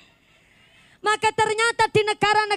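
A young woman sings loudly into a microphone through loudspeakers.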